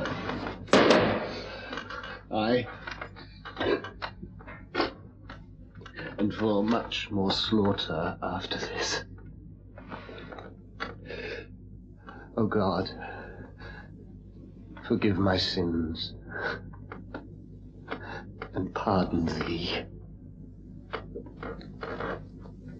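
A man speaks intensely and pleadingly, close by.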